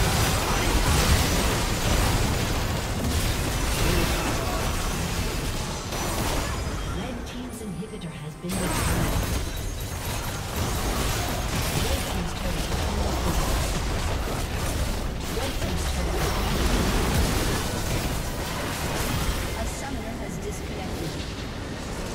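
Magic blasts and explosions crackle and boom in a fast video game battle.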